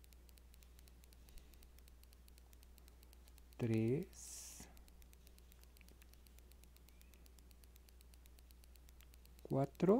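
A metal crochet hook softly rustles through yarn.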